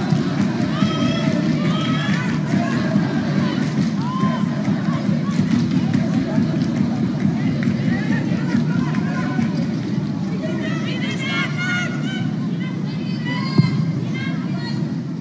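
A large crowd murmurs steadily in a stadium outdoors.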